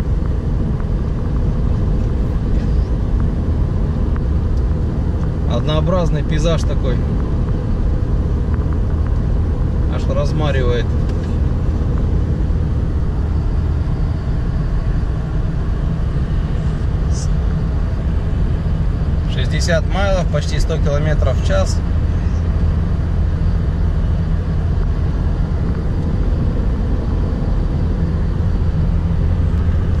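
Wind rushes against a moving car.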